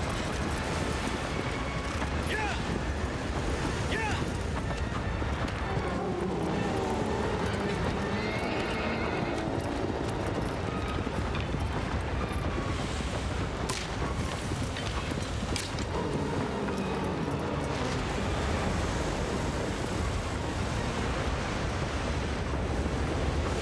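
Hooves gallop fast on soft sand.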